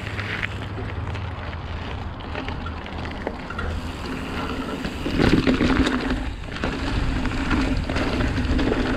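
Wind rushes past, rumbling low and steady.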